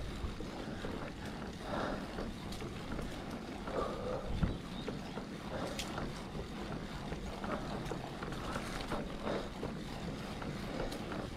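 Bicycle tyres roll and crunch over a gravel track.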